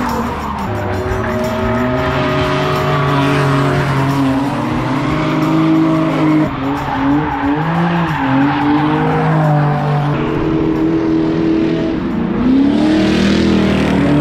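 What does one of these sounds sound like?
A car engine revs hard and roars up and down.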